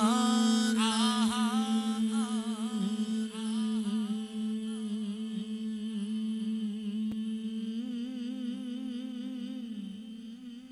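A man sings a slow, wavering melody.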